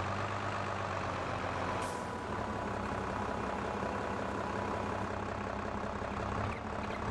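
A tractor engine idles with a steady low rumble.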